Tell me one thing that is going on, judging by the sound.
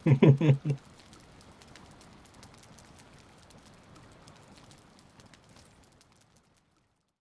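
A fire crackles and pops softly.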